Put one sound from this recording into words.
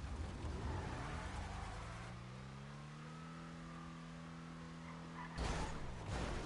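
A car engine revs up, rising in pitch.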